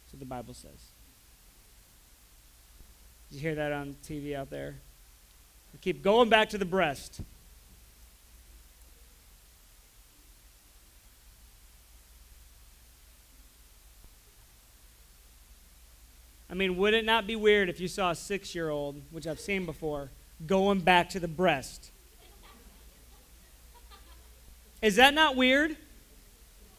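A young man speaks with animation, close by, in short bursts.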